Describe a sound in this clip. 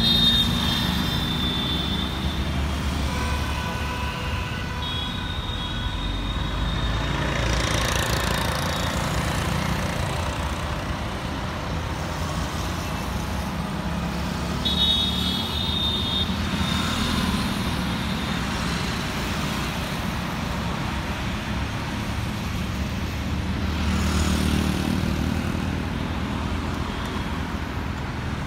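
Cars and motorcycles drive past along a road.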